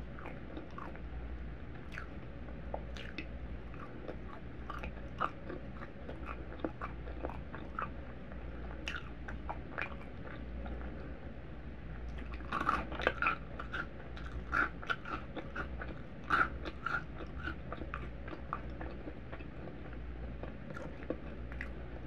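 A woman chews crunchy food close to a microphone.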